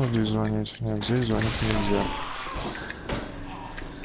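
A blade slashes and strikes a foe.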